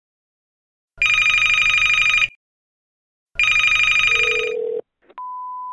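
A telephone rings loudly in bursts.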